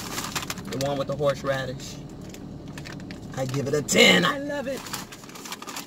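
A chip bag crinkles.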